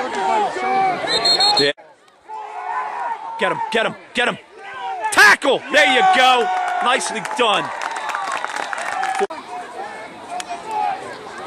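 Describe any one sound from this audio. A crowd of spectators cheers and shouts nearby, outdoors.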